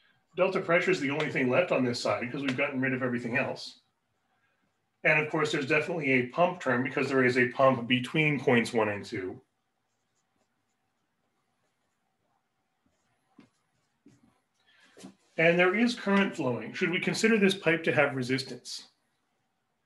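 A man speaks calmly and clearly, close by, in pauses.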